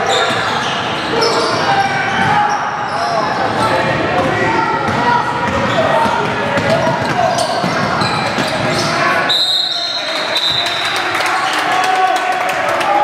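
A basketball bounces on the floor, echoing in a large hall.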